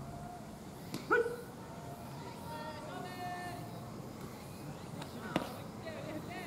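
A baseball smacks into a catcher's mitt.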